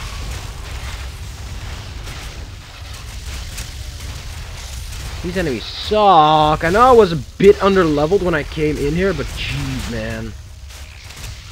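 Fiery spell blasts whoosh and crackle in a video game.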